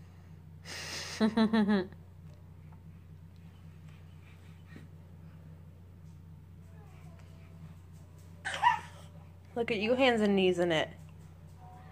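A baby squeals and babbles happily close by.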